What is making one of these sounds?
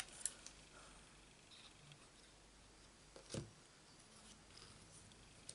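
Paper rustles and taps softly under fingers.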